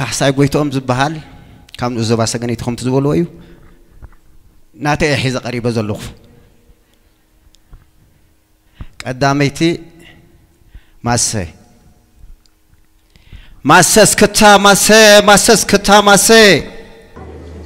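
A man speaks and sings with animation through a microphone.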